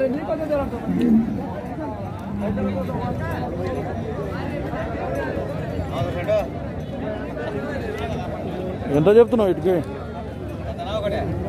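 A crowd of men chatter all around outdoors.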